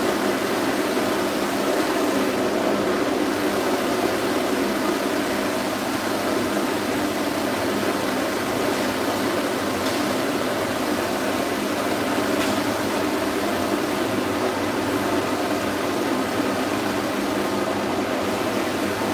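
A pet dryer blows with a steady, loud whooshing roar.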